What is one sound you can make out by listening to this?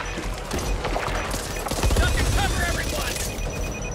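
A pistol fires shots.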